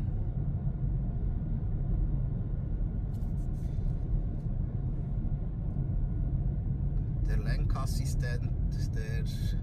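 A car's engine and road noise rumble steadily from inside the cabin.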